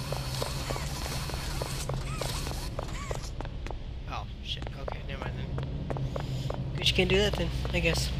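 Footsteps hurry along a hard floor in a quick, even rhythm.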